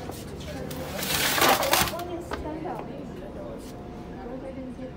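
Fabric rustles close by.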